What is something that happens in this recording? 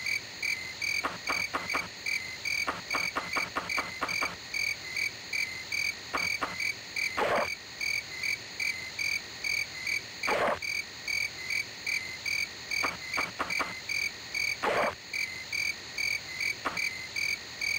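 Short clicks sound as menu items are picked.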